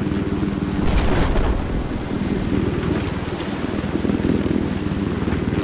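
A heavy machine gun fires rapidly and steadily.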